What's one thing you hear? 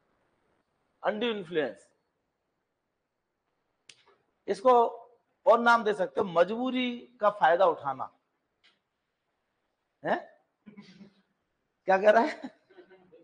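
A middle-aged man speaks calmly and clearly into a microphone, lecturing.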